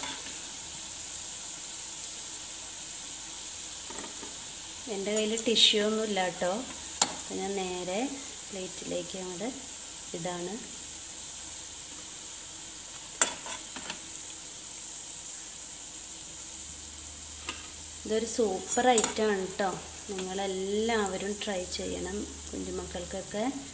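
Hot oil sizzles steadily in a frying pan.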